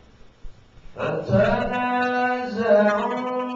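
A man recites in a drawn-out melodic chant, close to a microphone.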